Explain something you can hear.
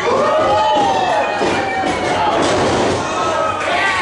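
A wrestler slams onto the ring mat with a thud.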